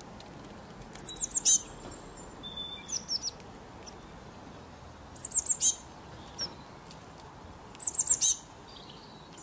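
A small bird chirps in short, bright bursts.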